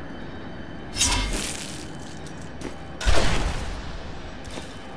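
A video game plays a loud sudden whooshing sound effect.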